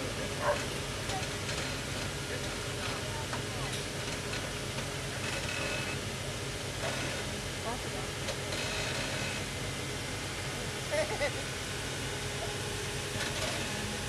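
Tyres crunch and grind slowly over rock.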